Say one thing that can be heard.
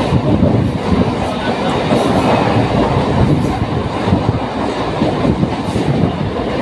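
A train rumbles and clatters steadily along the tracks.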